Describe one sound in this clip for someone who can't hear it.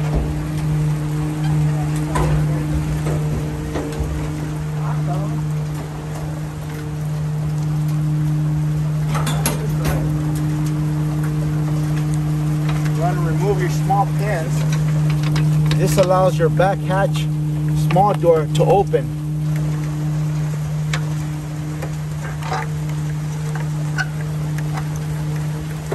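A truck engine idles with a steady low hum.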